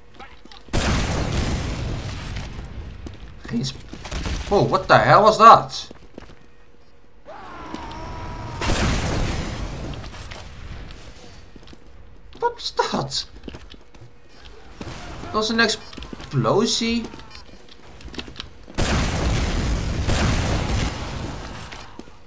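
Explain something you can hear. Rockets boom and explode in heavy bursts.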